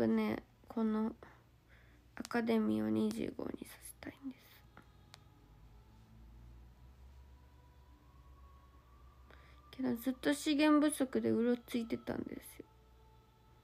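A young woman speaks softly and close to a microphone, in short bursts.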